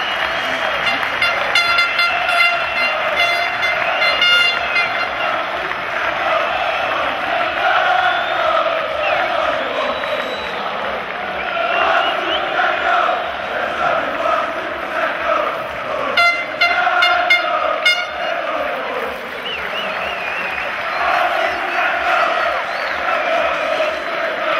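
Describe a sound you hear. A large crowd cheers and chants loudly outdoors.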